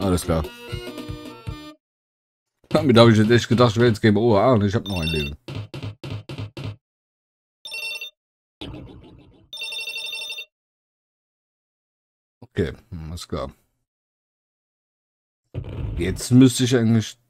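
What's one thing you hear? Game music plays in short bursts of jingles.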